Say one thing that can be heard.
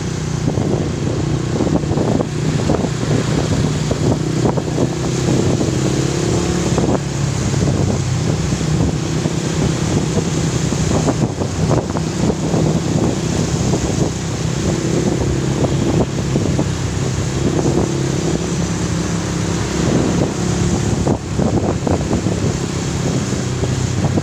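A motorcycle engine hums steadily close by as it rides along.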